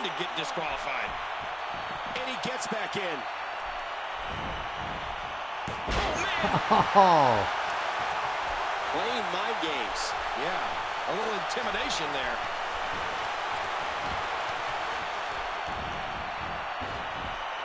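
A crowd cheers and roars steadily in a large arena.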